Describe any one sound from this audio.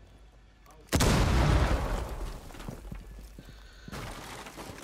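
A loud blast booms and rumbles away.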